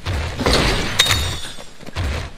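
A short chime sounds.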